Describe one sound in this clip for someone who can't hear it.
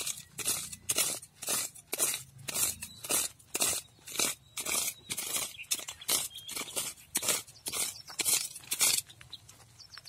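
A hand tool scrapes and chops into dry soil in a quick, steady rhythm.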